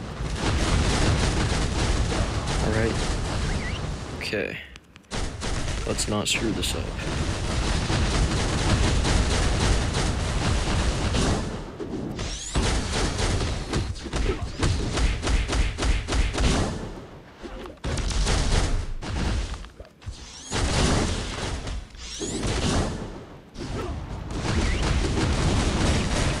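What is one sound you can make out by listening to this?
Explosions boom and blasts crackle in a game battle.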